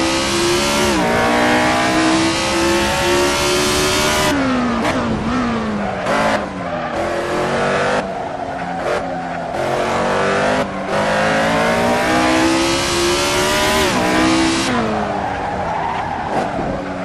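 A racing car engine roars loudly, rising in pitch and dropping sharply with each gear change.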